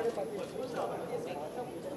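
A young woman laughs happily.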